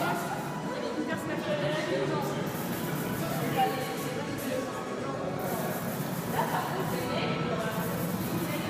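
A crowd of people chatters nearby in an echoing room.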